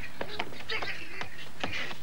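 Shoes slap quickly on pavement as a child runs.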